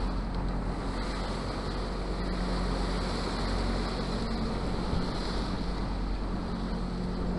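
Waves wash against the hull of a sailing boat.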